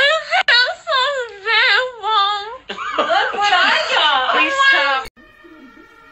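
A young woman cries and wails loudly, close by.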